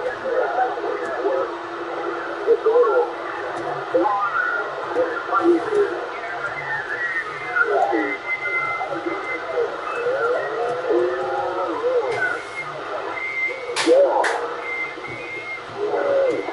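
A voice talks through a CB radio loudspeaker, thin and faint, with hiss behind it.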